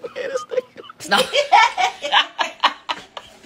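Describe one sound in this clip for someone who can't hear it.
A woman laughs and speaks with animation.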